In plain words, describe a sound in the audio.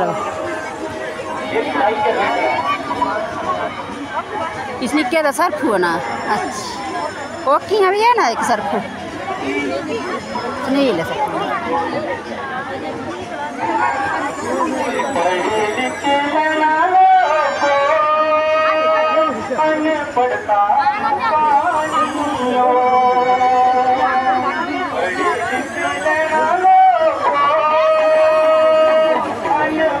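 A crowd chatters and shouts outdoors.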